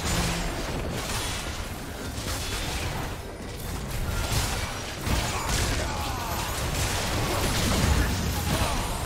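Video game spells whoosh and crackle during a battle.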